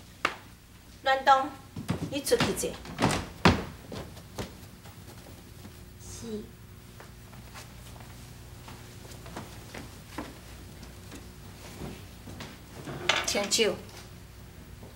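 A young woman speaks in a high, sung-out voice.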